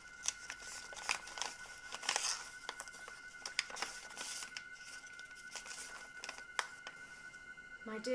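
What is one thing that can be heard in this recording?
Paper crinkles and rustles as an envelope is torn open and a letter unfolded.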